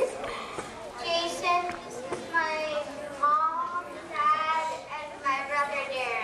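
A young boy speaks into a microphone, heard through a loudspeaker.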